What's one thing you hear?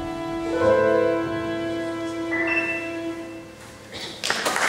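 A violin plays a sustained melody.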